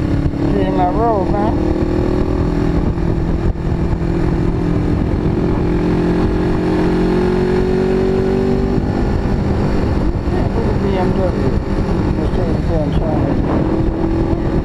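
A motorcycle engine hums steadily close by, rising and falling with speed.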